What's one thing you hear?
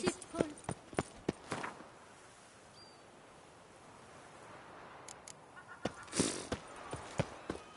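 Footsteps tread on stone paving.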